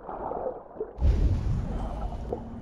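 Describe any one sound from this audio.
Water splashes heavily as someone climbs out.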